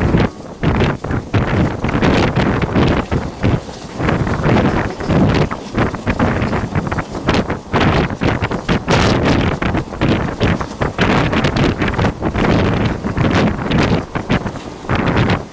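A passing train roars by close alongside.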